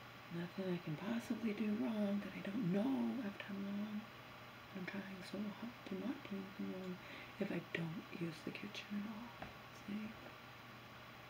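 A middle-aged woman talks calmly and expressively, close by.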